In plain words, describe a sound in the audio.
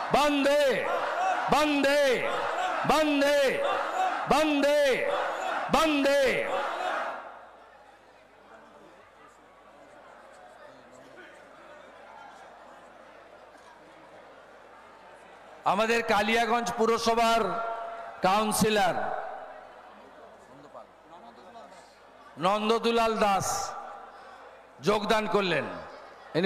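A man chants slogans loudly through a loudspeaker, in bursts.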